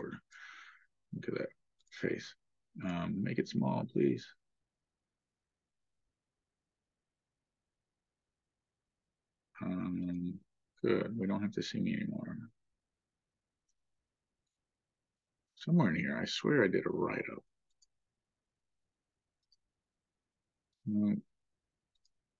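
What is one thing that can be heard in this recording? A man speaks calmly into a microphone in short bursts.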